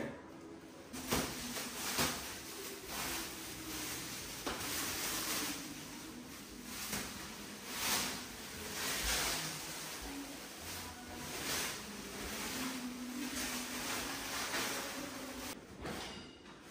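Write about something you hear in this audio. Plastic wrap rustles and crinkles as it is pulled off.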